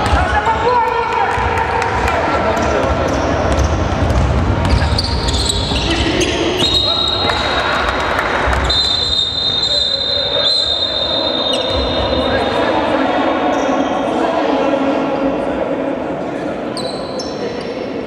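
A basketball bounces on a wooden floor.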